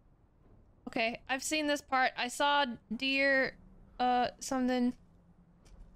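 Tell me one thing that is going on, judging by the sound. A young woman speaks animatedly and closely into a microphone.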